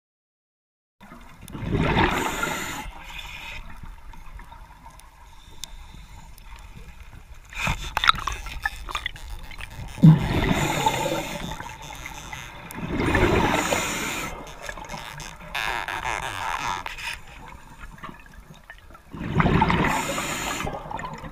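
Bubbles from a diver's breathing rush and gurgle in bursts underwater.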